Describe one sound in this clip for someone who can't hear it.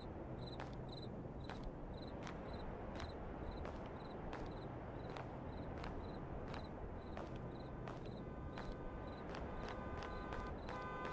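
Footsteps crunch slowly on a stone path outdoors.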